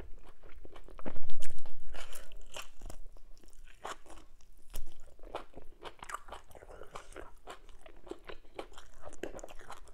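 A woman chews food wetly and smacks her lips close to a microphone.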